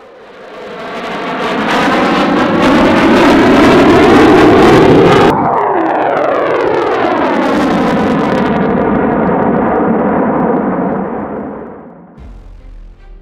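A jet engine roars loudly overhead, its pitch dropping as it passes and fades away.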